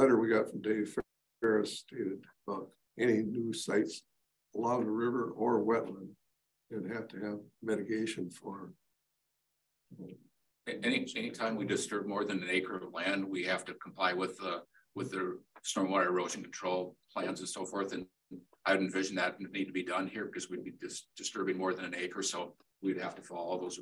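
A man speaks calmly at a meeting table.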